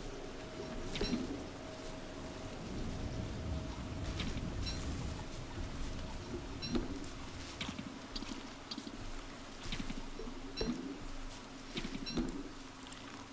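Sharp chopping knocks come again and again.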